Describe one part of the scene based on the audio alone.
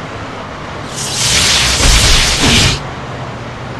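An electric zap crackles loudly.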